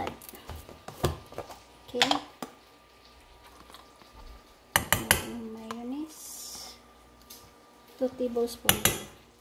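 A spoon clinks against a metal bowl.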